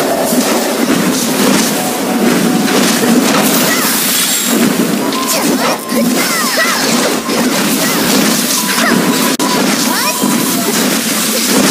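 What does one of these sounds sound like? Magic spells crackle and zap in a game battle.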